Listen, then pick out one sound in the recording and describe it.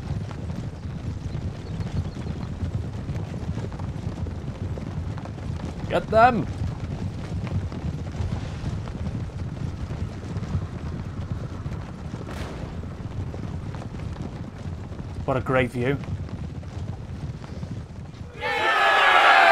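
Many horses trot together in a low, steady rumble of hooves.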